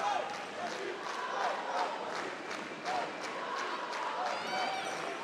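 A crowd claps in a steady rhythm in a large echoing hall.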